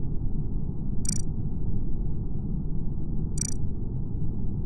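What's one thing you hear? A game's interface gives a short electronic beep twice.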